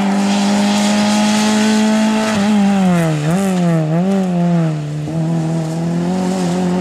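A small hatchback rally car's engine roars at high revs, changing gear as it races past.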